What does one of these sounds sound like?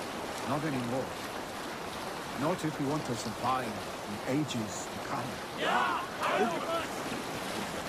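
A man speaks calmly in a deep voice, close by.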